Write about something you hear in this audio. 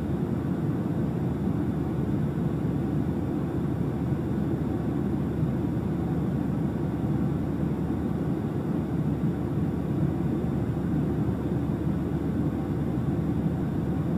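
A young man speaks calmly into a headset microphone.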